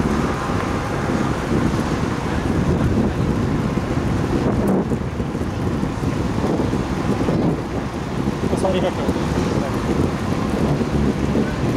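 Wind buffets loudly while riding along at speed.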